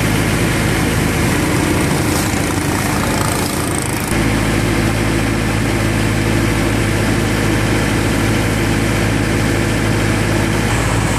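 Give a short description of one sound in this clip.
A boat engine drones steadily and close by.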